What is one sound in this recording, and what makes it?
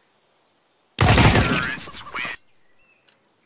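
Gunshots fire in a short burst.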